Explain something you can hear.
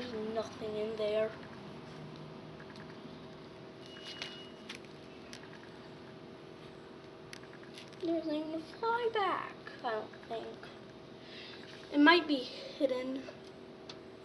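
A young boy talks and calls out playfully close by.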